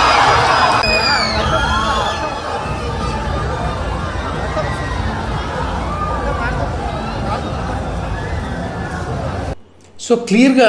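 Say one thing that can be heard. A crowd shouts and cheers noisily outdoors.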